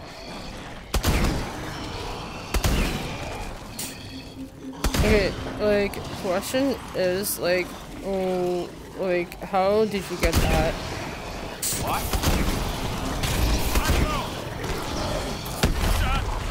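Rockets explode with heavy booms.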